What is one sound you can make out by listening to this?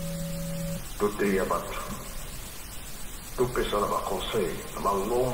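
A middle-aged man speaks calmly into a nearby microphone.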